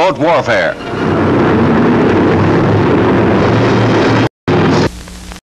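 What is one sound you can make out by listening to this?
A propeller plane's engine roars steadily as the plane takes off.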